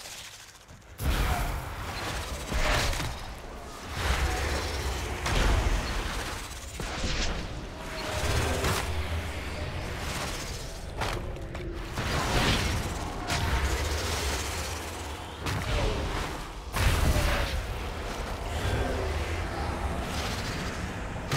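Magic spell effects whoosh and crackle in a fight.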